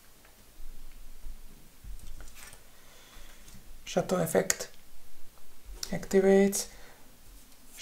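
A playing card slides softly onto a cloth mat.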